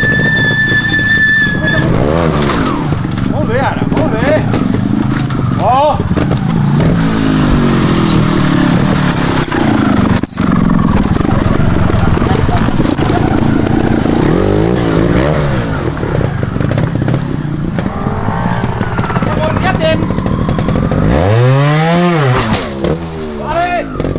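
A motorcycle engine revs up and down in short bursts.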